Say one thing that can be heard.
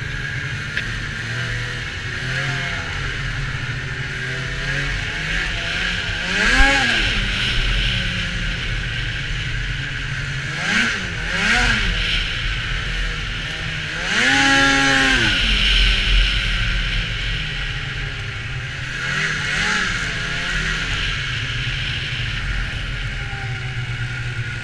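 A snowmobile engine drones steadily and revs up and down.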